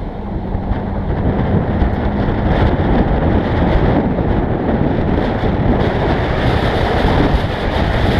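Wind buffets loudly against a moving car as it speeds up.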